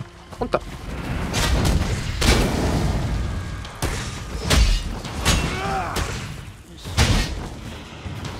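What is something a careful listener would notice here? A sword strikes with sharp clanging hits.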